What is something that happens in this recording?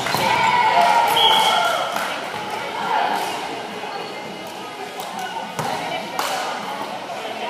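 Many young people chatter and call out in a large echoing gym.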